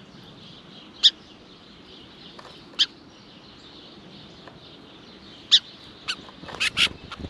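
A small bird gives sharp, short chip calls close by, now and then.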